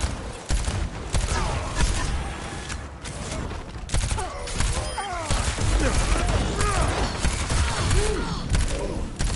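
Rapid gunfire and blasts crack loudly.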